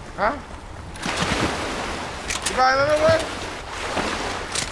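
A game character splashes through water.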